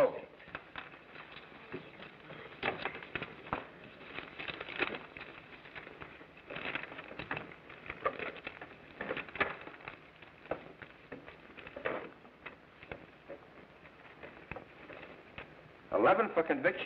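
Playing cards and chips click and rustle on a table.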